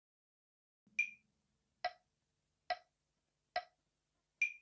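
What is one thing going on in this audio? Drumsticks tap a slow, steady beat.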